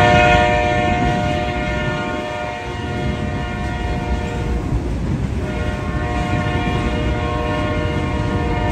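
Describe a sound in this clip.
A freight train rumbles past nearby, its wheels clattering on the rails.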